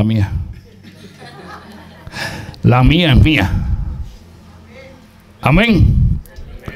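A middle-aged man speaks with animation into a microphone in an echoing room.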